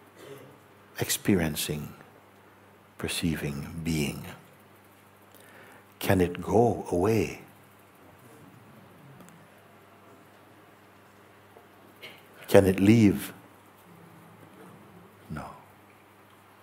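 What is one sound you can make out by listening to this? An elderly man speaks slowly and softly, with long pauses.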